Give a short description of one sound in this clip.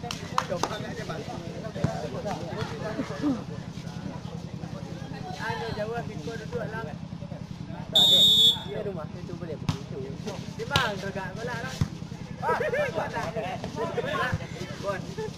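Players hit a volleyball with sharp slaps.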